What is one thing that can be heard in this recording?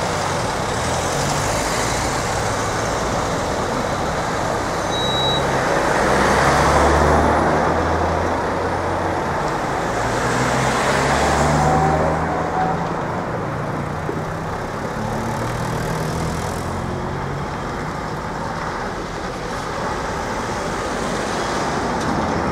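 Cars drive one after another over a railway level crossing.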